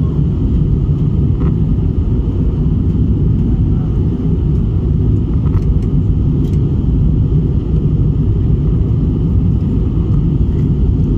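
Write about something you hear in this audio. Jet engines roar steadily, heard from inside a plane in flight.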